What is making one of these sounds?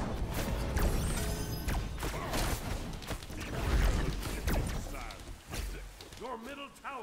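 Game spells whoosh and blast with loud impacts.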